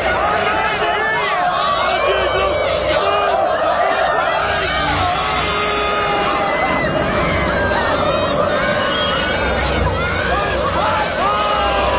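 A crowd of men and women cheers and shouts loudly.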